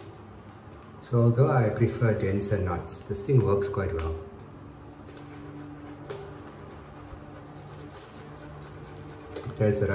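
A shaving brush swishes softly through lather on a face.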